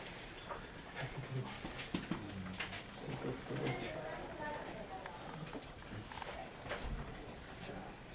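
A young man speaks into a microphone over a loudspeaker in a large room.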